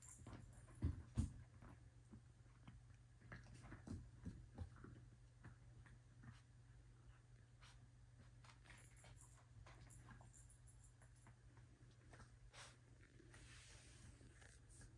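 Puppies rustle and tug at a soft toy in a bed.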